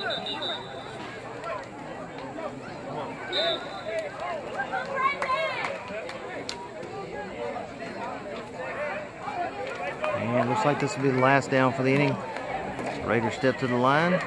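A crowd of spectators chatters and cheers outdoors.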